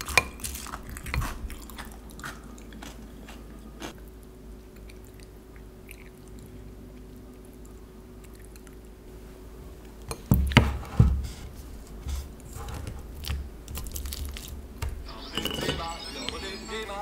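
A spoon scrapes and clinks against a glass bowl.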